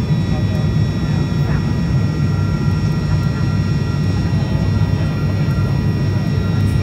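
An aircraft engine drones steadily from inside the cabin.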